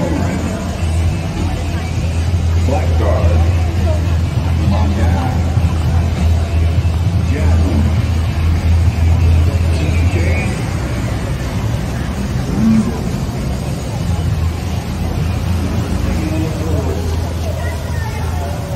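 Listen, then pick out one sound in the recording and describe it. A busy crowd of people chatters all around outdoors.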